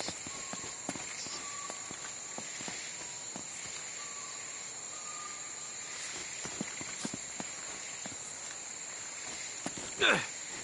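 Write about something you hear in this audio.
Footsteps patter on grass and stone.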